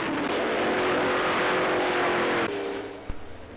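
A racing car engine roars past at speed.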